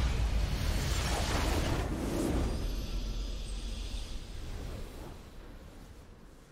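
A loud magical whoosh and boom burst out, then fade away.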